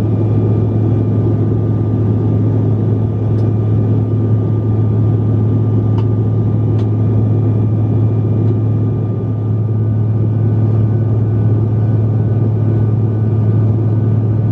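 Jet engines roar steadily with a deep, constant hum inside an aircraft cabin.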